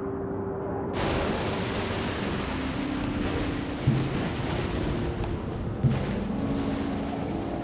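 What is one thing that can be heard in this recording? Thunder cracks and rumbles loudly in a storm.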